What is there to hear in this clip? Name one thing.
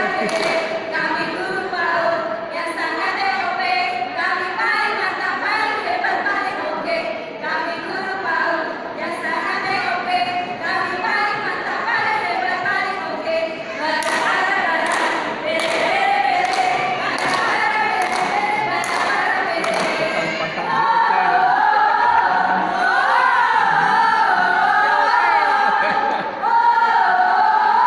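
A group of women chant and sing in unison.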